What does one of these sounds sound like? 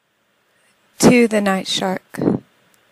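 A woman reads aloud calmly and close to a microphone.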